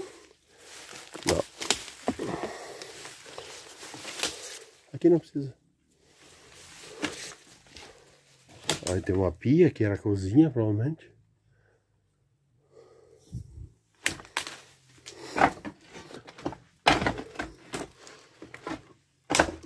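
Footsteps crunch over loose debris and broken tiles.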